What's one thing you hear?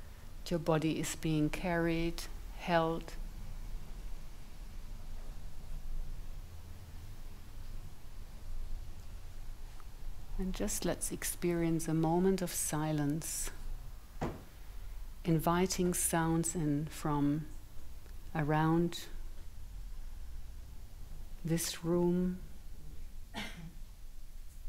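A woman speaks calmly and slowly through a microphone, with pauses.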